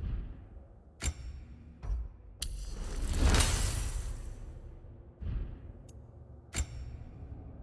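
Soft menu clicks and whooshes sound as selections change.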